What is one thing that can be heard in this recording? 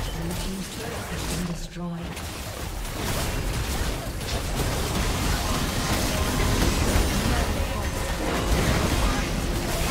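Game spells and attacks crash and whoosh in a busy battle.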